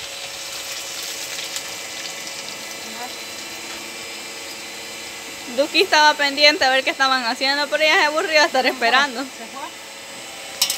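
Food sizzles and crackles as it fries in a pan.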